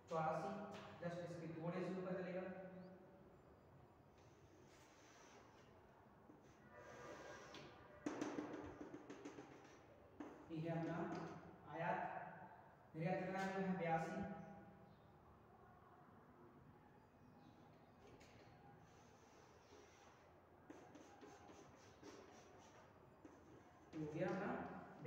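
A man speaks nearby in a lecturing tone, with pauses.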